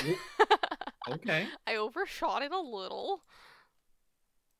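A young woman laughs loudly into a microphone.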